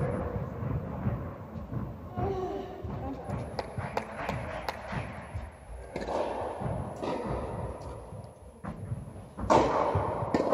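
A tennis ball is struck with a racket, echoing in a large hall.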